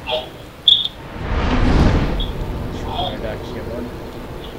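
A fire flares up with a rushing whoosh and slowly fades.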